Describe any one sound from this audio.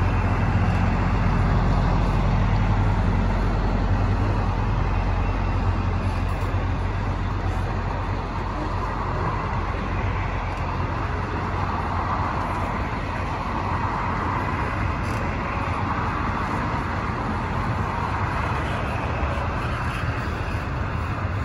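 Train wheels rattle and screech steadily on the rails.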